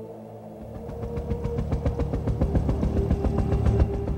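A helicopter's rotor thumps rapidly overhead.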